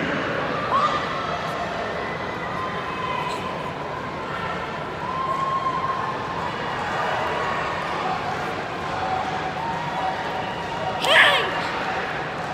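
A young man lets out a sharp, loud shout.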